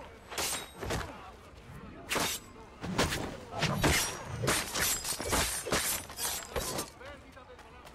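Blows and blades clash in a fight.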